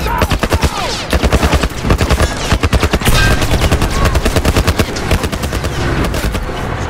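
Guns fire in rapid bursts close by.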